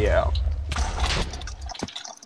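A sword strikes a zombie with quick, dull hits.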